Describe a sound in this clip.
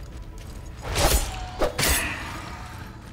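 A blade strikes with sharp metallic hits.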